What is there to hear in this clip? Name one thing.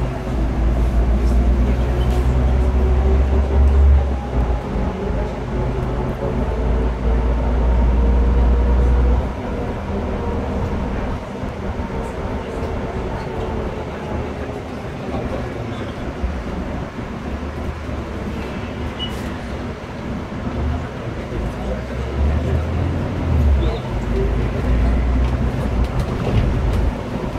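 A bus engine hums and drones steadily from inside the cabin.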